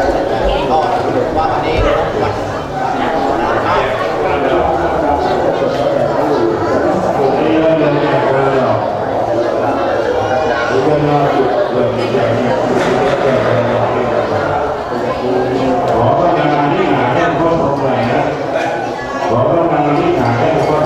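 A group of men chants together in a low, steady drone.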